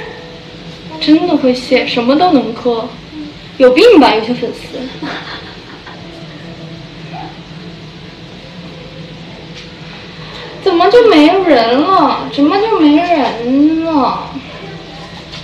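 A young woman talks close by with animation.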